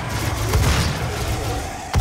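A shotgun fires.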